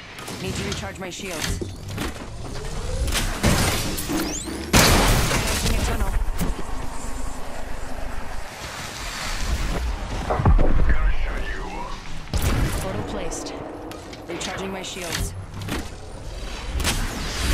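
A device charges with a rising electric hum.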